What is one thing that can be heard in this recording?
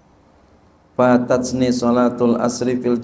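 A man speaks calmly into a microphone, heard through a sound system.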